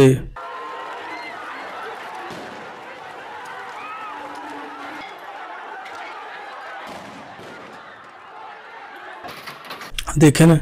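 A crowd shouts and clamours outdoors.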